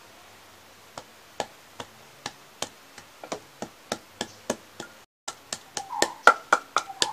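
A wooden pestle pounds in a wooden mortar with steady dull knocks.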